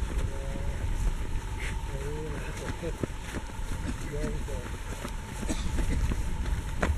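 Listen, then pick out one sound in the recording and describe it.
Footsteps thud on grass as several runners jog past close by.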